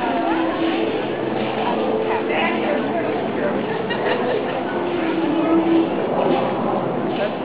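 Small wheels roll steadily over pavement.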